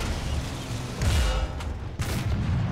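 A shell explodes.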